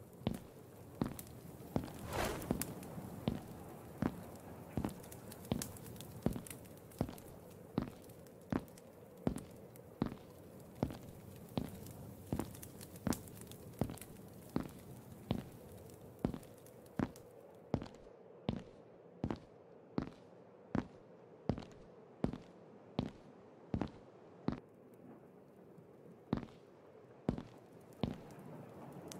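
Footsteps tread steadily on a stone floor in an echoing passage.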